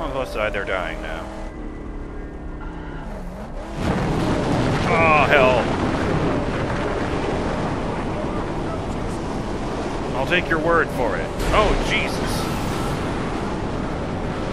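A car engine roars as the car speeds over rough ground.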